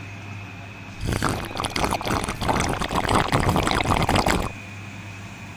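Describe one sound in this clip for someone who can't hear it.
A thick drink pours from a blender jug into a plastic cup.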